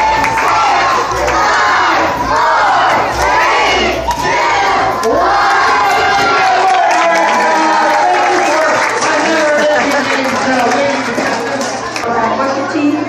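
Children sing loudly together through loudspeakers in a large echoing hall.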